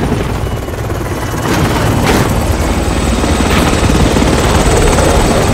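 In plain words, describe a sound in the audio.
A helicopter's rotor thumps loudly overhead, growing louder as it descends close by.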